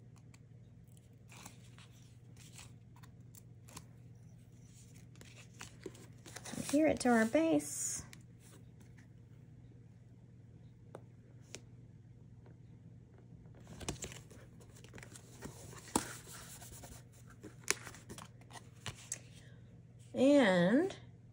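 Stiff paper card rustles and taps as it is handled.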